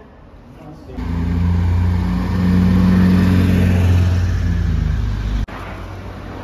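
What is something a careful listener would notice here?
A van rumbles past on a road.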